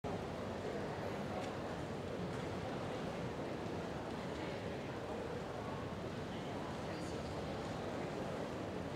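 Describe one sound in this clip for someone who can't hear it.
Teenagers chat quietly in a large echoing hall.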